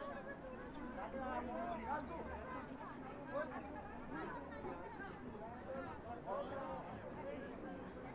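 A crowd of men and women chatters and murmurs nearby.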